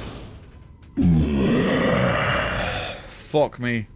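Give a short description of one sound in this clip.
A heavy metal gate creaks open.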